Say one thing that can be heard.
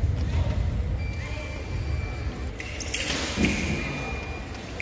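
An electronic scoring box beeps with a steady tone.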